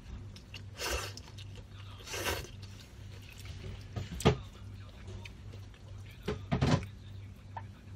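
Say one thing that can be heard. A young woman slurps noodles loudly up close.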